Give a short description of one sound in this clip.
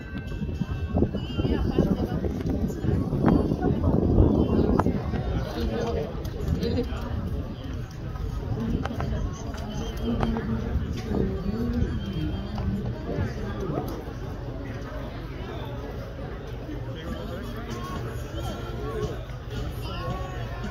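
Horse hooves thud on sand at a distance.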